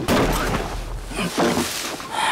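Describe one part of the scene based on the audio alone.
A man crawls over dry straw with a rustle.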